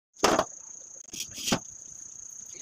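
A hand pats a metal pan.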